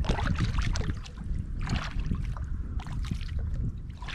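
A paddle dips and splashes in water.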